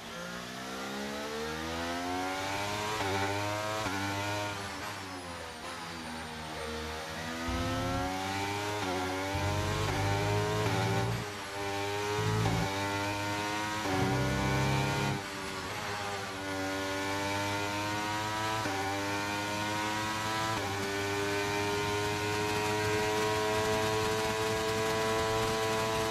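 A racing car engine revs high, rising and dropping in pitch as it shifts gears.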